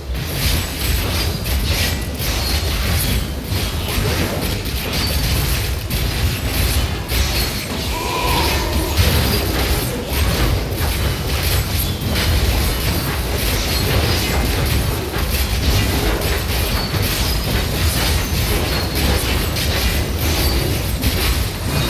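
Magic blasts crackle and burst in quick succession.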